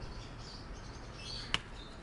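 Leaves rustle as a hand brushes a small plant.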